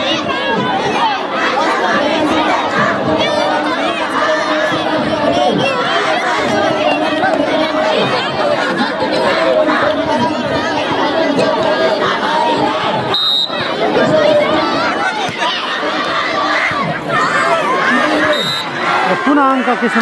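A large crowd cheers and chatters loudly outdoors.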